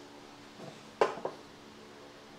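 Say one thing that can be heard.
A gloved hand knocks lightly on a metal bar.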